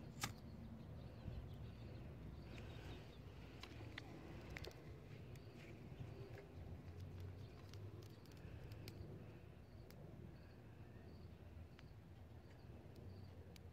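A lighter clicks as it is struck.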